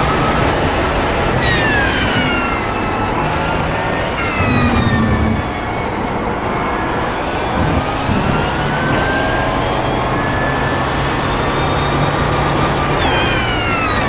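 A racing car engine roars loudly, its pitch rising and dropping sharply with each gear shift.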